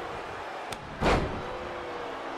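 A heavy body slams onto a wrestling ring mat with a loud thud.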